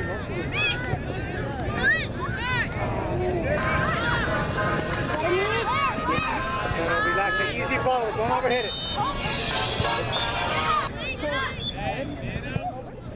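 Spectators and young players shout and call out across an open field.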